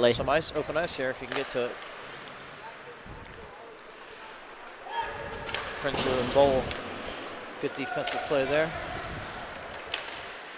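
Skates scrape and glide across ice.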